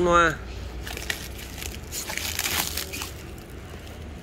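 Plastic wrap crinkles under a hand.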